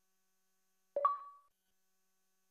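A short electronic notification chime sounds.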